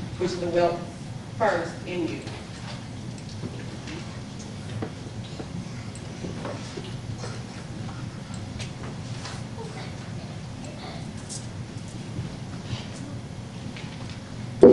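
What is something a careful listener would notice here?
A crowd of men and women murmurs quietly in an echoing hall.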